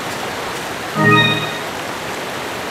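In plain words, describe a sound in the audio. A short musical jingle plays.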